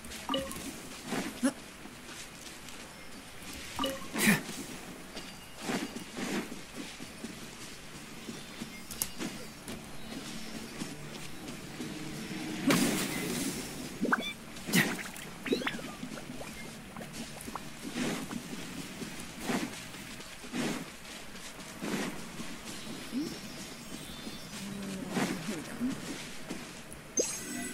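Footsteps pad quickly over grass.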